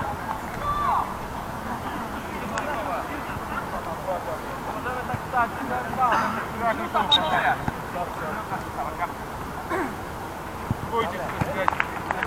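Young women shout and call out to each other across an outdoor field.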